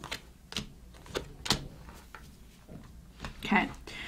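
A deck of cards is set down on a table with a soft tap.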